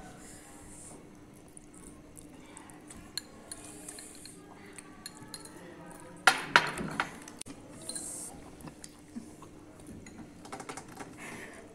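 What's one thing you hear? Young women slurp noodles close by.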